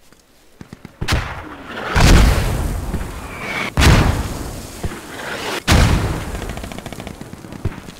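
Loud explosions boom nearby and rumble away.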